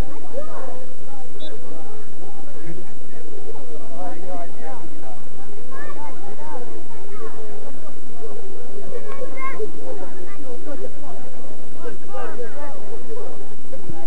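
Men shout and call to each other across an open field outdoors.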